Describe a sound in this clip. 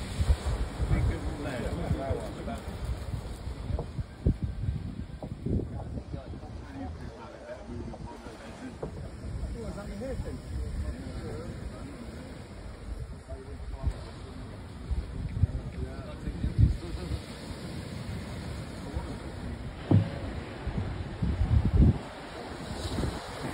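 Waves wash onto a beach.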